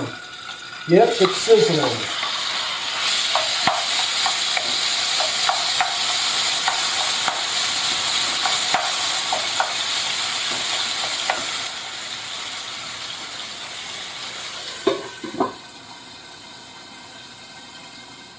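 Food sizzles loudly in hot oil in a pan.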